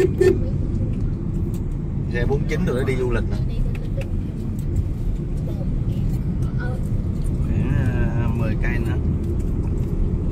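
A car engine hums steadily with a low road rumble.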